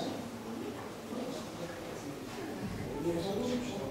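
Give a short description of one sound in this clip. A crowd of men and women murmurs and chatters in a large echoing hall.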